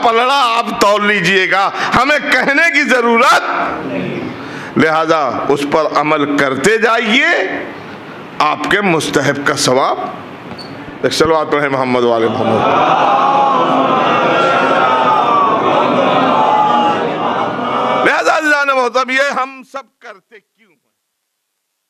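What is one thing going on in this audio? An elderly man speaks with animation into a microphone, heard through a loudspeaker.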